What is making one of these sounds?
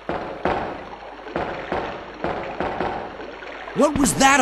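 Footsteps clank down metal stairs at an even pace.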